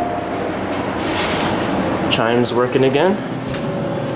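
Elevator doors slide shut.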